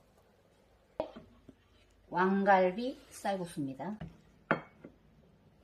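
A ladle clinks against a pan.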